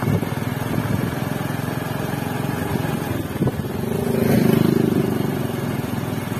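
A motorcycle engine drones closer and passes by.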